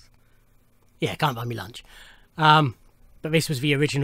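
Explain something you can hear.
A middle-aged man speaks close to a microphone, with animation.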